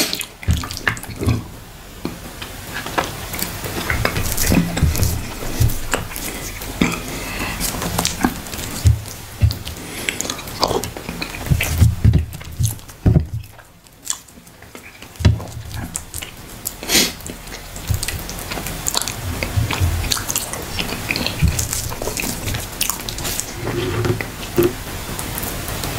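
Fingers squish and scrape through soft rice on a plate.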